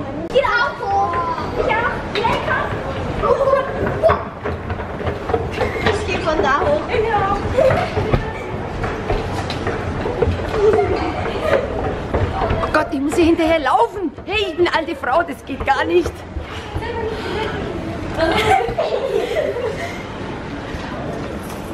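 Young girls talk and laugh excitedly close by.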